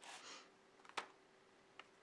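A card taps down on a table.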